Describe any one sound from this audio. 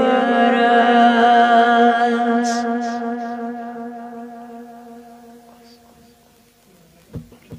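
A young boy sings a long, drawn-out melody through a microphone, with echo.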